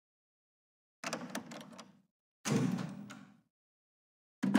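A heavy door creaks open slowly.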